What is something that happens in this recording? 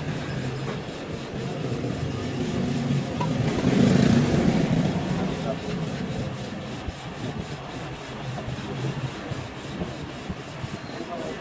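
A heavy metal part scrapes and clunks against an engine block.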